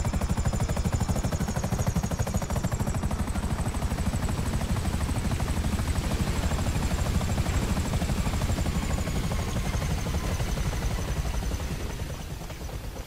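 A helicopter's rotor thumps loudly and then slowly winds down.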